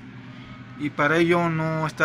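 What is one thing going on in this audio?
Microwave buttons are pressed with soft clicks.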